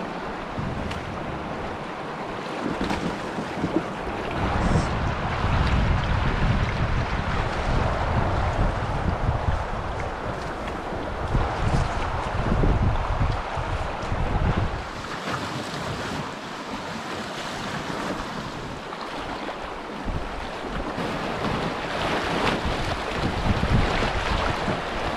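A river's rapids rush over rocks.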